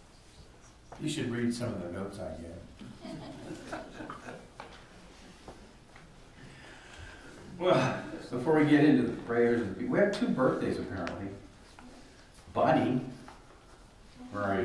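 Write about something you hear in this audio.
An elderly man speaks calmly, reading out in a room with a slight echo.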